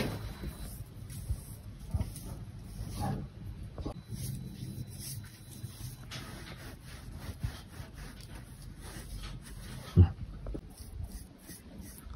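A paintbrush swishes across wood.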